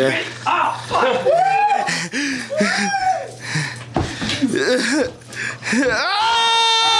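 Young men shout and laugh excitedly close by.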